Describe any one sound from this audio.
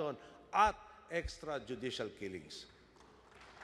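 A man speaks forcefully into a microphone in a large hall.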